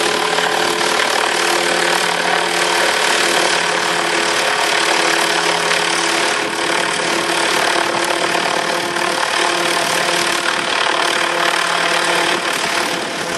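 A model helicopter's engine whines steadily overhead.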